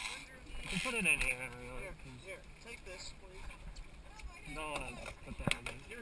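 A fishing reel clicks as line is wound in.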